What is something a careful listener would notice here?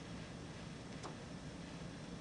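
A hinged cover on a small instrument clicks shut.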